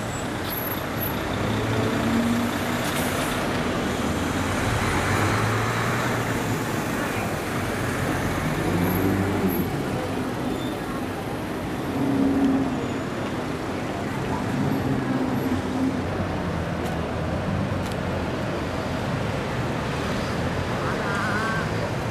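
A sports car engine growls loudly nearby.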